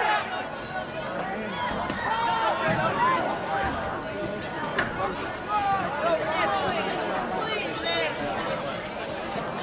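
A crowd of spectators cheers and shouts from the stands outdoors.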